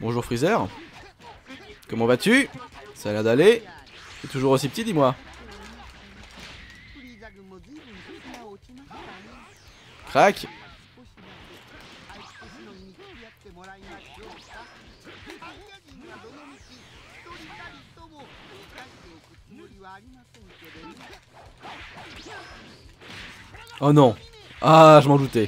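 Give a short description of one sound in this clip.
Fighters trade heavy punches and energy blasts that crack and thud in short bursts.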